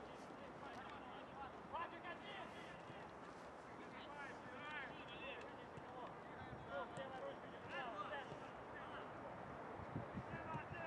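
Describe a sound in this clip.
Players shout to each other across an open outdoor pitch, heard from a distance.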